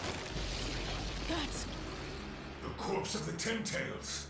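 A young man speaks in shock, heard up close.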